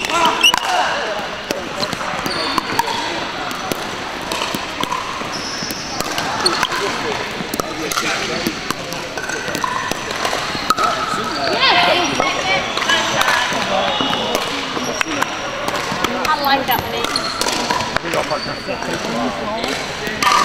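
Many people talk and call out in a large echoing hall.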